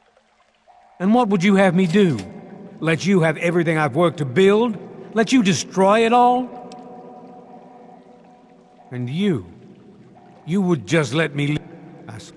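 A man speaks tensely and close up.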